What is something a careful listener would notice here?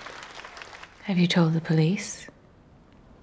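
A woman speaks quietly and close by.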